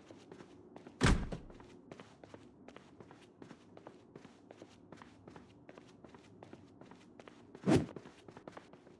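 A door bangs open loudly.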